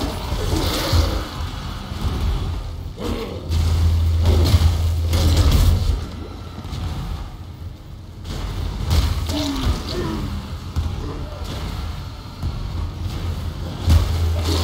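Heavy impacts thud repeatedly.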